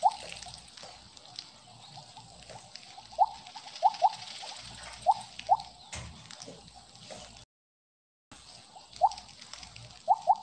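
Short rising electronic blips pop now and then as a game snake eats.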